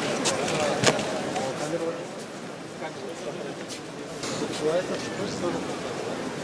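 A crowd of people murmur and chatter outdoors.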